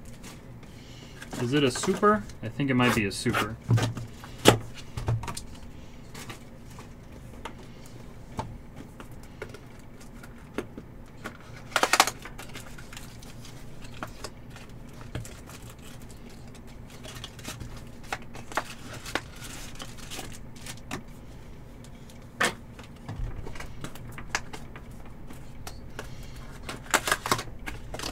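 Cardboard packaging rustles and crinkles as hands open a box.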